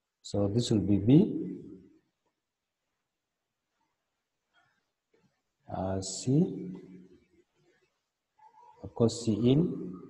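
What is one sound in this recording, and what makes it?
A man speaks calmly into a microphone, explaining in short phrases.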